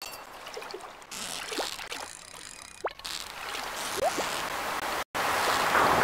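A fishing reel whirs as a line is reeled in.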